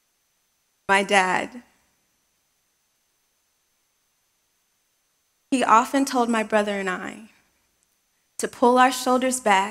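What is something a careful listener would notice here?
A woman speaks calmly into a microphone in a large hall, with pauses between phrases.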